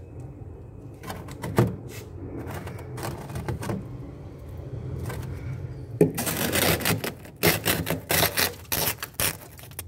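Ice cubes crunch and rattle as a hand digs through them.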